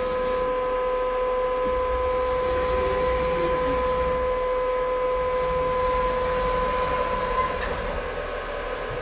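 A machine table slides along with a soft whirring.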